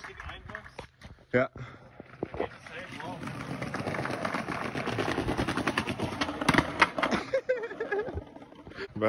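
Skateboard wheels roll and rattle over paving stones.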